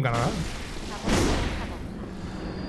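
A sword slashes and smashes wooden objects apart.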